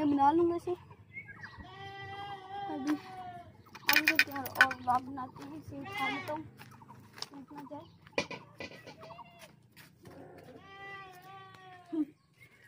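A young boy talks close by, with animation.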